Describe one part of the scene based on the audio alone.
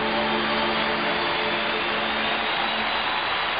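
A man sings a long held note.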